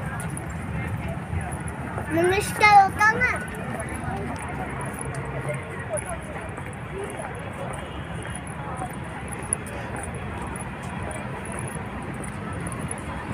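People chatter faintly in the distance outdoors.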